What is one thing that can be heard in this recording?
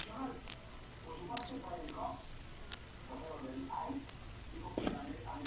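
Small plastic parts click and tap as a toy is handled up close.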